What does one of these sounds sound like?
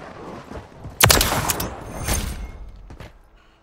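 A rifle fires loud, sharp shots in a short burst.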